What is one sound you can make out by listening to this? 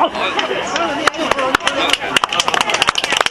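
Clapping breaks out in a crowd.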